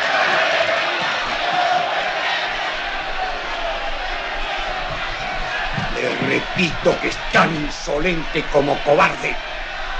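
A crowd of men cheers and murmurs loudly.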